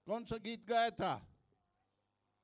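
A man calls out loudly and with animation through a microphone.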